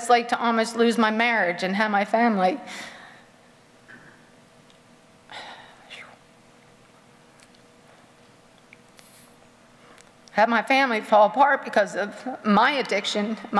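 A woman reads out calmly through a microphone, pausing between phrases.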